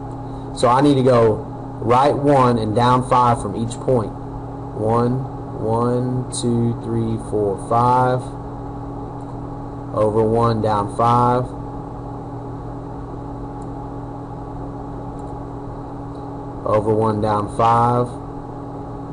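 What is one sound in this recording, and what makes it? A man speaks calmly into a nearby microphone, pausing between phrases.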